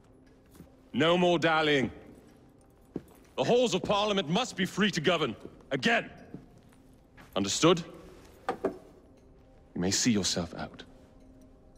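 A man speaks in a low, measured voice, close by.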